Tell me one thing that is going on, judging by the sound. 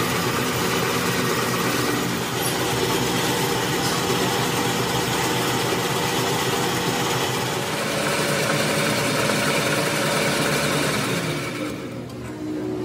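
A lathe motor hums steadily and winds down.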